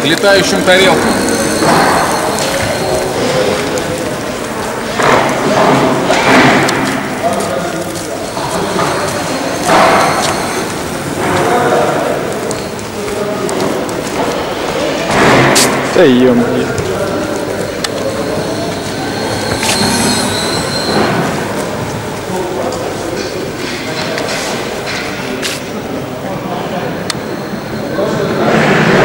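An electric bicycle motor hums softly as the bicycle rolls across a hard floor in a large echoing hall.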